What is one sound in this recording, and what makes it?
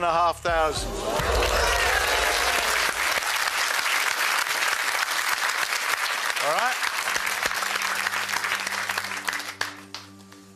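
A studio audience applauds and cheers loudly.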